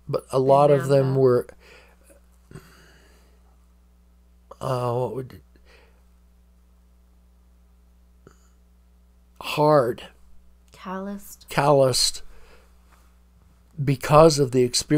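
An elderly man speaks calmly into a close microphone, in short bursts with pauses.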